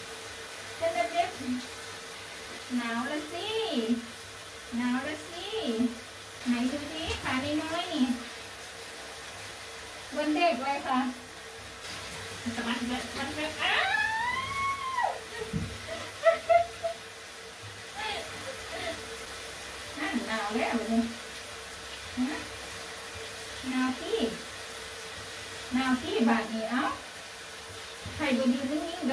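A woman talks softly and playfully, close by.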